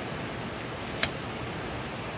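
A knife blade strikes a piece of bamboo with a sharp knock.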